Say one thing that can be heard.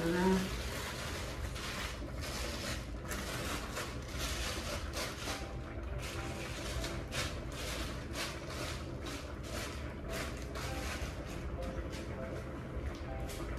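Plastic sheeting rustles and crinkles as it is handled.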